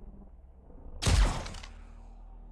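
A gun fires a single loud shot indoors.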